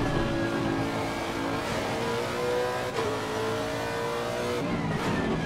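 A race car engine roars loudly, rising steadily in pitch.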